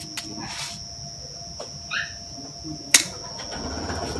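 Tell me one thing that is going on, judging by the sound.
Pruning shears snip a branch with a sharp click.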